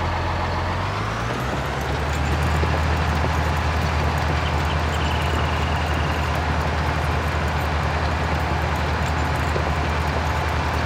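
A tractor engine revs up and drones loudly while pulling.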